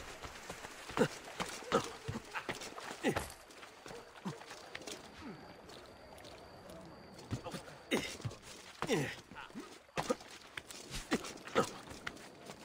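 A figure lands with heavy thumps after jumps.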